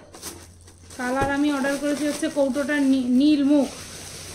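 A woman speaks close by in a drawn-out, sing-song voice.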